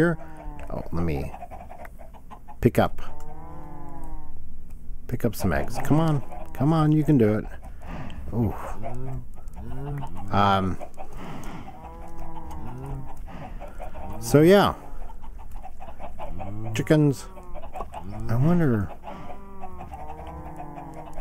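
Chickens cluck close by, many at once.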